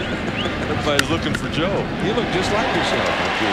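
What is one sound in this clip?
A crowd cheers as the ball is hit.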